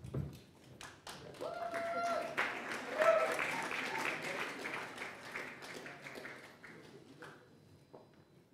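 An audience applauds loudly in a large echoing hall, then the clapping dies away.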